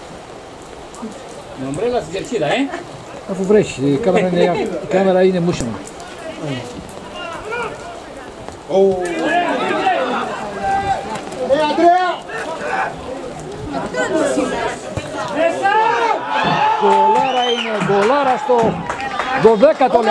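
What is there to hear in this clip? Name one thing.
Men shout to one another outdoors across an open field.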